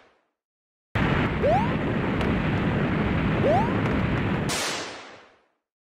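Fireballs whoosh and roar past.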